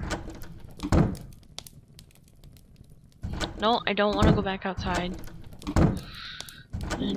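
A fire crackles in a hearth.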